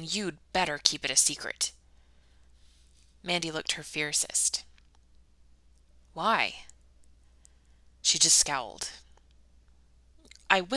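A young woman reads aloud calmly in short phrases, close to a microphone.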